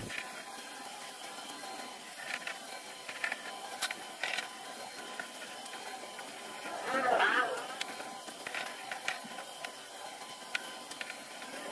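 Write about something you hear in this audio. A hand rubs and sands a car panel.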